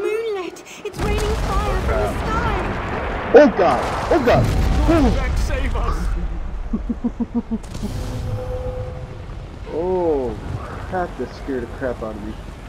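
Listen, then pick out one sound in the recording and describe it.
A blazing meteor roars and rumbles overhead.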